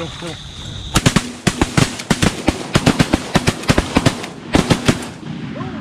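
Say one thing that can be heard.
A shotgun fires several loud blasts outdoors.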